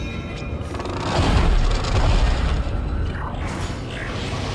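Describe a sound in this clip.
A heavy metal door slides open with a loud mechanical rumble.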